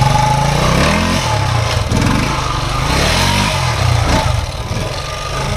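A motorcycle engine revs hard in short bursts, rising and falling in pitch.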